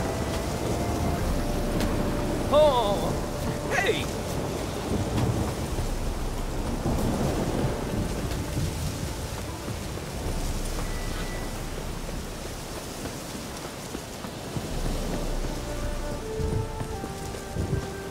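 Footsteps run over earth and grass.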